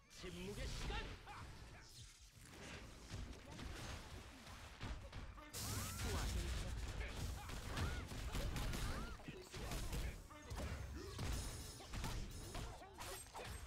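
Electric zaps crackle from a game weapon.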